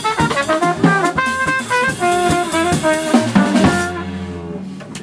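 A drum kit plays with cymbals.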